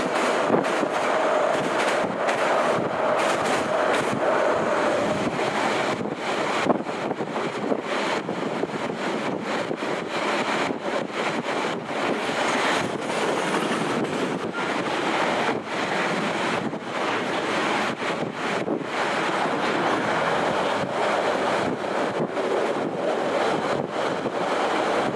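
Wind rushes loudly past the open side of a moving train.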